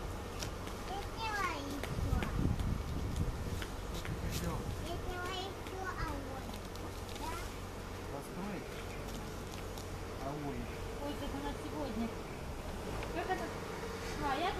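Young children babble and chatter in high voices nearby.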